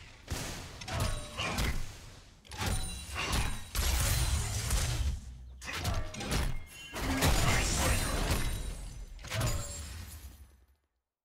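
Spells blast and weapons strike in a fast, noisy fight.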